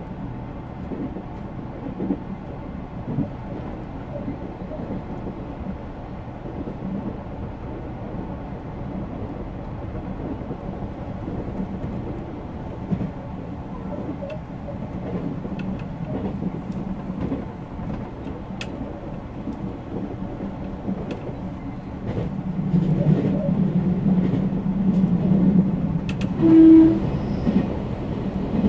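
An electric express train rumbles along rails at speed.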